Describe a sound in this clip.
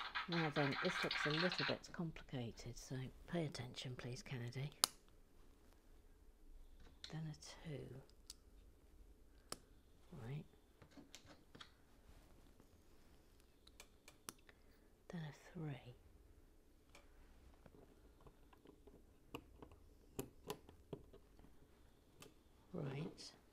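Small plastic bricks click and snap together.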